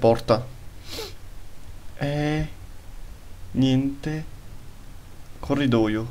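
A young man speaks in short bursts through a close microphone, with animation.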